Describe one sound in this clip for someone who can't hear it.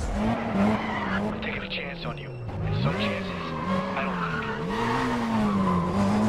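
Tyres screech as a car skids through a turn.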